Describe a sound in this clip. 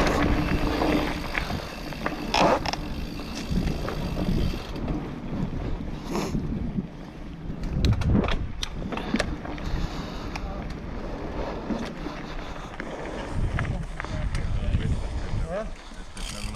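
Bicycle tyres rumble and rattle over a bumpy dirt trail.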